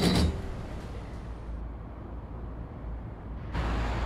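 A tram rumbles along its rails.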